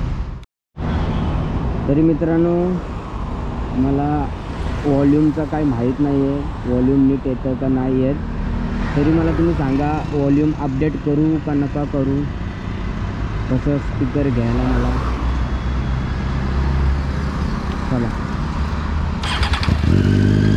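A motorcycle engine idles close by and is revved in short bursts.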